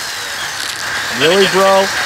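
A power drill whirs up.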